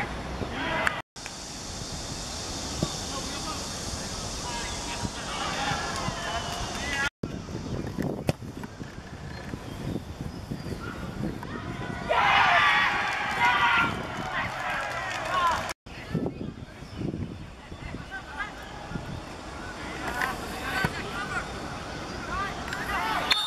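Young players shout to each other outdoors.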